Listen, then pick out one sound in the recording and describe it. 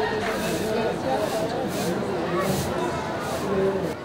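A crowd of men and children chatter nearby.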